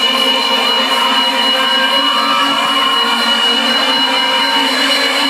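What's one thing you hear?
Loud electronic music plays through a large sound system, heard distorted from within a crowd.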